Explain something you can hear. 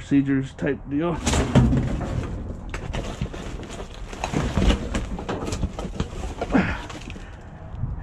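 Plastic bags and rubbish rustle and crinkle as a hand rummages through them.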